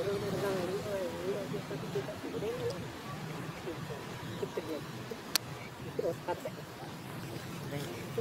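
A leaf crinkles in a small monkey's hands.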